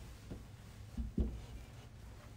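A heavy book thumps down onto a table.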